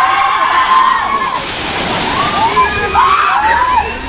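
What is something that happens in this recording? A large gush of water pours and splashes down.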